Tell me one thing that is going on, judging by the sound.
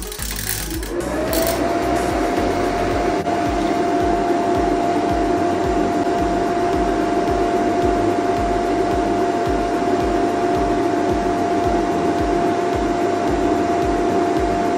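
A power inverter hums and whirs steadily under load.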